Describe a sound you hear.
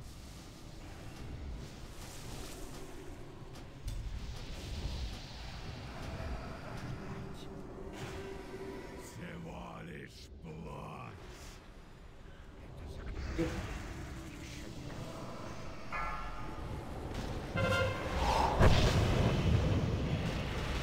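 Magic spells crackle and burst in a game's battle.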